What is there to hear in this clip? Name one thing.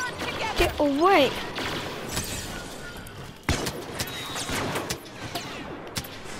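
Laser guns fire in quick bursts.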